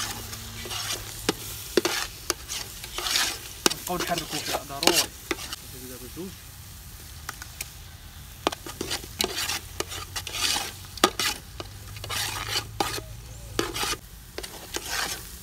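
A thick stew bubbles and sloshes in a pot.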